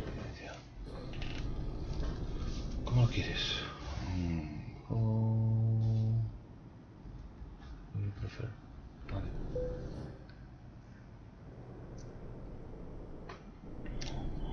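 A truck engine rumbles as the truck drives slowly.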